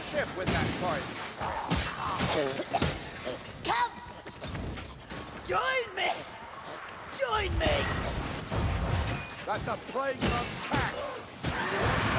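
Heavy weapons strike and clang against creatures.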